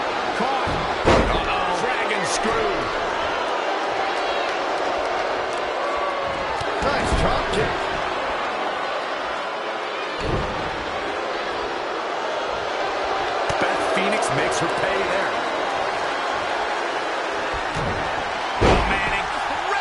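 Bodies slam heavily onto a wrestling mat with loud thuds.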